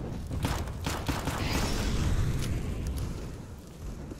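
A smoke grenade hisses.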